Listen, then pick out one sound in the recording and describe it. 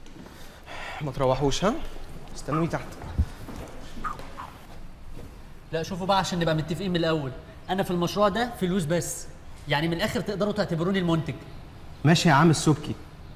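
Young men talk with animation in an echoing hall.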